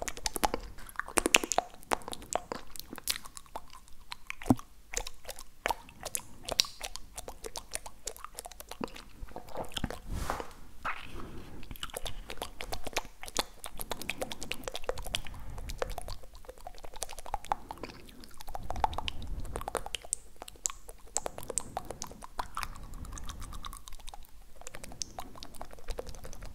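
A young man whispers softly, very close to a microphone.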